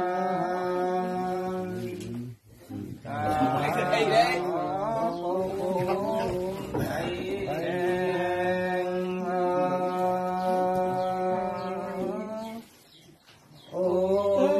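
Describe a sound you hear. An elderly man chants in long, drawn-out tones close by.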